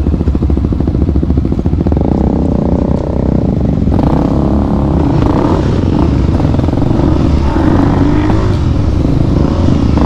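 Another motorcycle engine buzzes a short way ahead.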